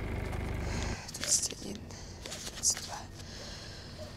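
Paper banknotes rustle as they are counted.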